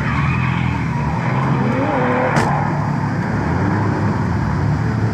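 Tyres screech on asphalt as cars drift.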